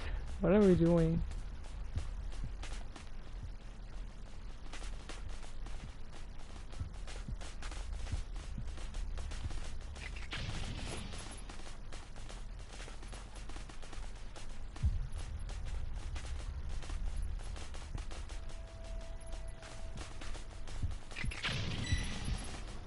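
Footsteps patter quickly over dry ground.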